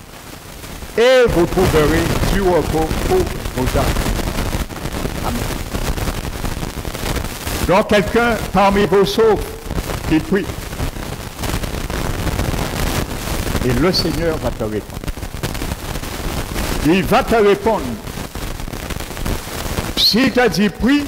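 An older man preaches with animation into a headset microphone, heard through loudspeakers in a reverberant hall.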